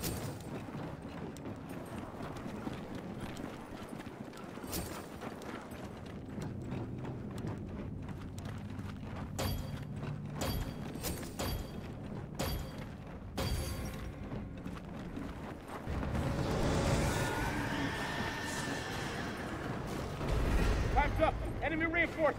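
Heavy boots thud on hard ground as a soldier runs.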